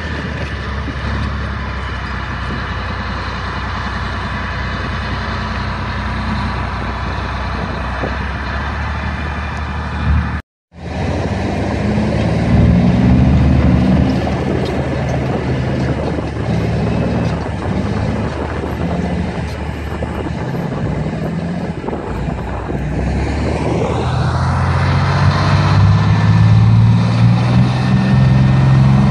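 Metal tracks clank and squeal over the ground.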